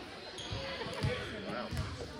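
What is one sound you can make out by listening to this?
A volleyball is served with a sharp smack in a large echoing gym.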